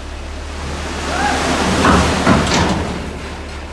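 Asphalt pours and scrapes out of a dump truck bed.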